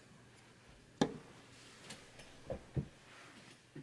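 A plastic board is set down on a rubber mat with a few soft knocks.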